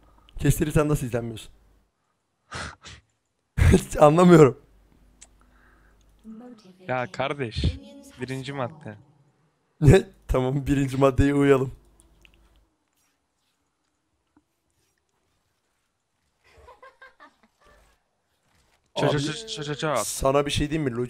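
A young man talks and laughs with animation into a microphone.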